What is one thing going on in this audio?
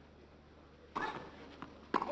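A tennis ball is struck hard with a racket.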